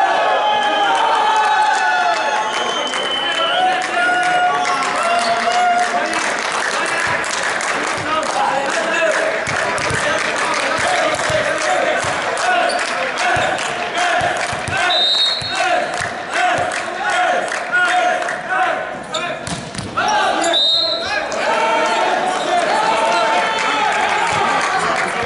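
A volleyball is struck and bounces with sharp smacks in a large echoing hall.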